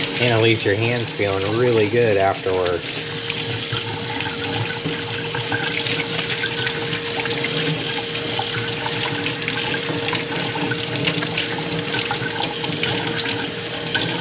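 Water runs from a tap and splashes over hands into a metal sink.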